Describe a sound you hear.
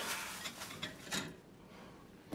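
Jars and containers clink and rattle in a refrigerator.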